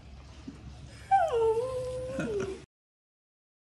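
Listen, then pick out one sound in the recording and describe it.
A small dog whines in high, bending tones.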